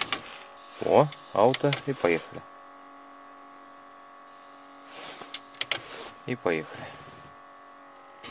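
A car radio hisses and warbles as it tunes between stations.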